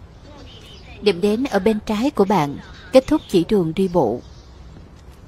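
A woman's recorded voice speaks calmly through a phone's speaker.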